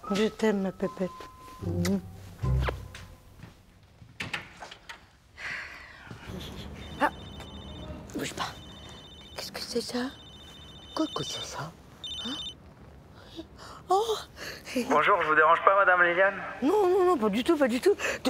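A woman speaks softly close by.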